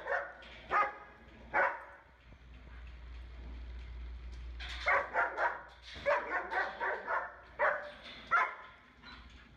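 A dog barks and howls loudly nearby.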